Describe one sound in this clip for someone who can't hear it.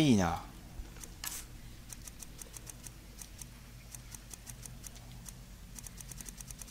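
Soft, high menu clicks tick in quick succession.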